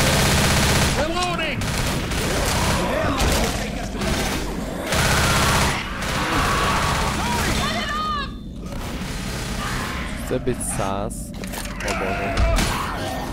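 Zombies snarl and shriek.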